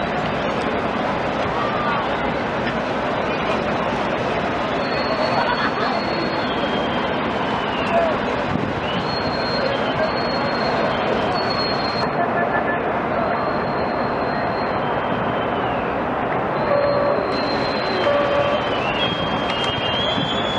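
A large crowd chatters and murmurs outdoors.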